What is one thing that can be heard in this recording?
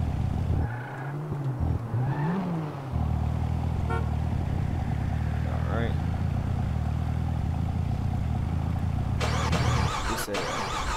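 A car engine rumbles low and slows to an idle.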